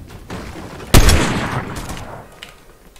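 A rifle fires a single loud shot that echoes.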